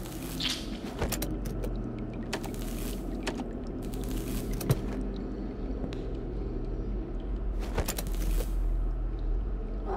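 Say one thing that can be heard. A wooden case creaks open with soft clicks.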